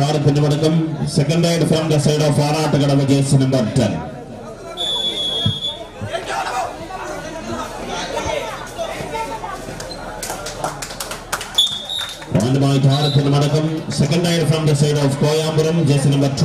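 A crowd murmurs and cheers in a large open space.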